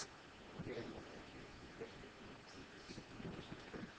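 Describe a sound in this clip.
A sheet of paper rustles as it is turned over.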